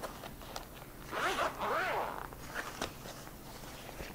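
A zipper is pulled open on a fabric case.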